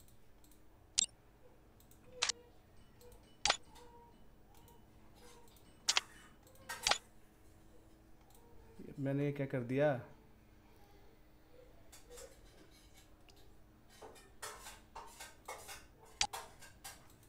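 Short menu clicks sound now and then.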